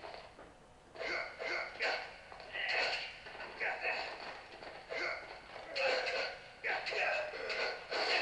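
Blows and scuffling sound from a close fight.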